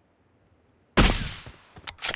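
A sniper rifle fires a single shot.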